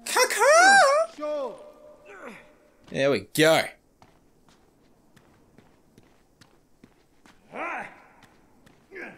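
A young man exclaims loudly and expressively into a microphone.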